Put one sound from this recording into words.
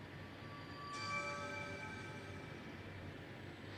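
A bright magical chime rings out.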